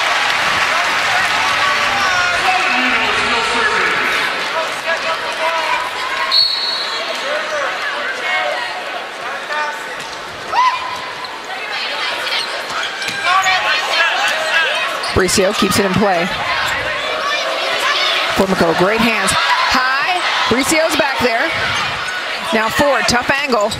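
A large crowd cheers and chatters in an echoing arena.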